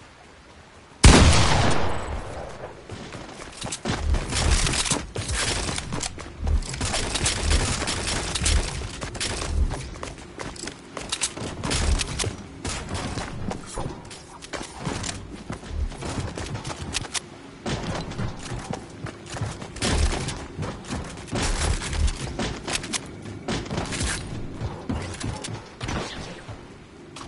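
Electronic game sound effects play with frequent sharp bursts.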